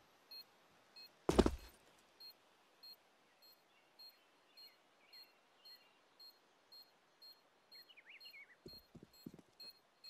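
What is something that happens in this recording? Footsteps tap at an even pace.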